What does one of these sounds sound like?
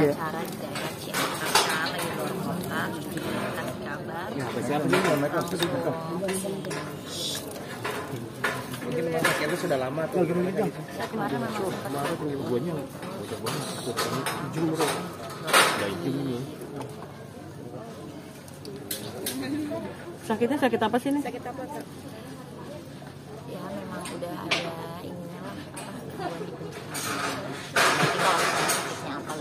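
A young woman speaks calmly into microphones close by.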